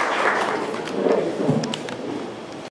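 A woman speaks into a microphone, heard through a loudspeaker in an echoing hall.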